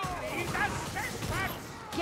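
A blast bursts with a dull thud.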